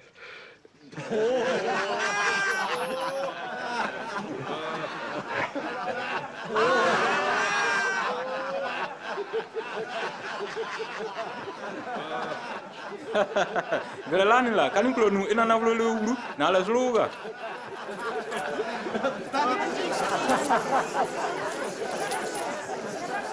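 A middle-aged man laughs and talks loudly with excitement.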